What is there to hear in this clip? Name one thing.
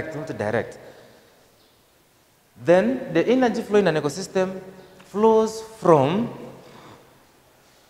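A man speaks clearly and with animation into a microphone.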